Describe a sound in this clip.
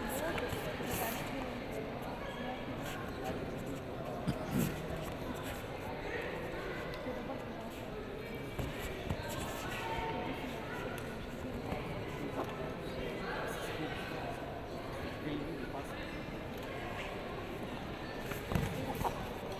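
Bodies thud and scuffle on a mat.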